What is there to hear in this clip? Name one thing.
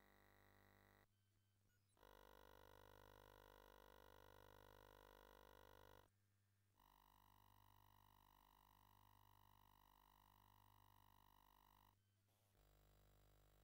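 Electronic video game music plays in steady beeping tones, with short pauses between tunes.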